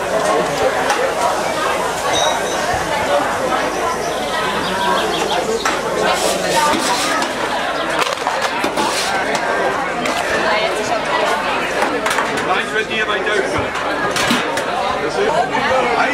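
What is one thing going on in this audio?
A crowd of adults chatters all around.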